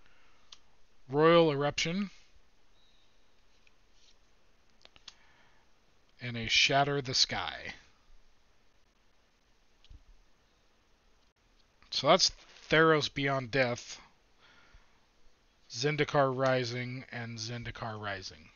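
Trading cards rustle and slide in hands.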